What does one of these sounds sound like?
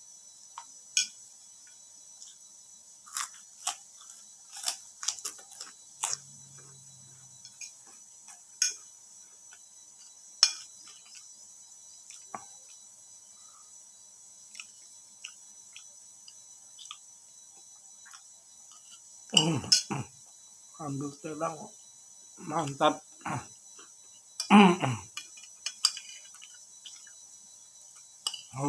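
A middle-aged man chews and smacks his lips close by.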